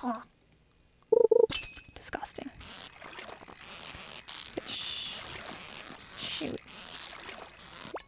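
A fishing reel whirs and clicks in a game.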